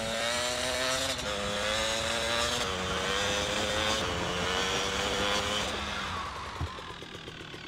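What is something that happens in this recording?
A motorbike engine revs loudly as it rides along.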